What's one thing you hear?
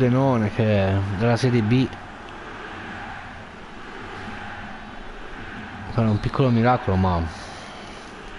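A young man talks loudly and excitedly into a close microphone.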